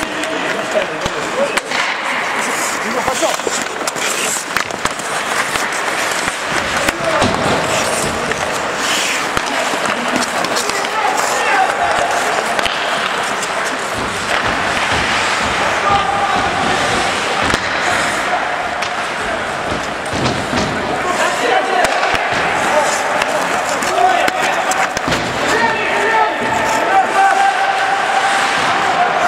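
Ice skates scrape and hiss on the ice.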